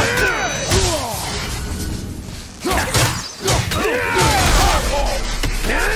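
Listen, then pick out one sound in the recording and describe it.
Blows thud in a close fight.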